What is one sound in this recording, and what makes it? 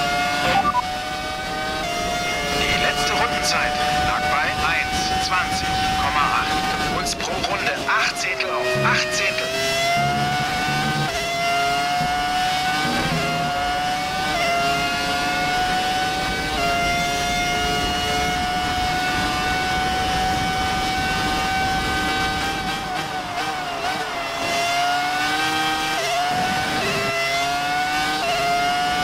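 A racing car engine screams at high revs, dropping in pitch at each gear shift and rising again.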